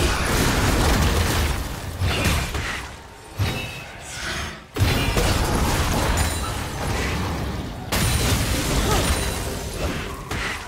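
Magic spells whoosh and crackle in a busy game battle.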